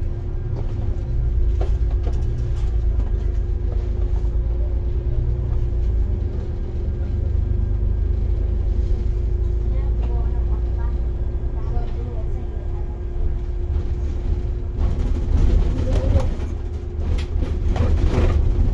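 A bus engine rumbles steadily as it drives along a road.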